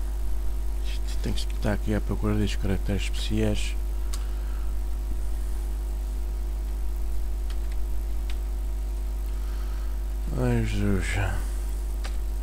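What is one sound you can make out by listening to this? A man speaks calmly into a headset microphone, in short bursts.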